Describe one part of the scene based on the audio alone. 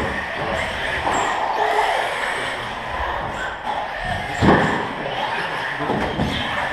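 A small electric toy car whirs as it drives across the floor.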